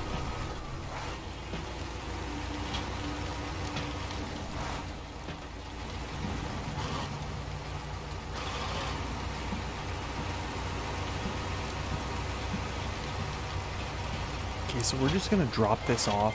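Tyres crunch over rocks and mud.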